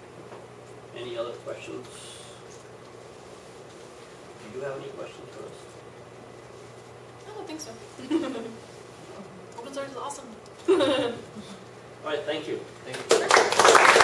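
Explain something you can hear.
A young woman speaks into a microphone to a room, with pauses.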